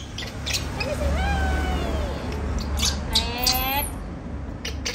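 A baby monkey squeals with high, wavering cries.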